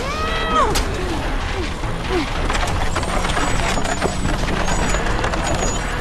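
Heavy wooden wheels roll and creak across boards.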